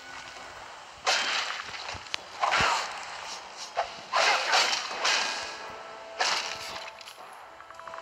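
Weapons clash and strike in a fight with a skeleton.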